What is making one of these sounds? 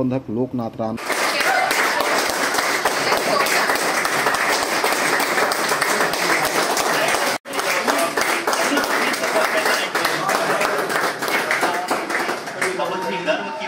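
A group of men clap their hands loudly and steadily.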